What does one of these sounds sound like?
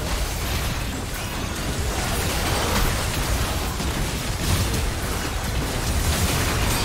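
Spell effects crackle and burst during a fight in a game.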